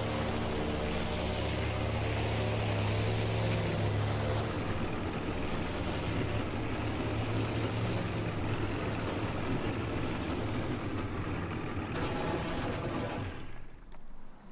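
A boat motor roars steadily, then cuts out.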